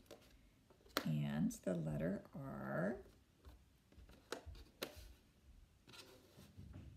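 Magnetic letter tiles click onto a metal tray.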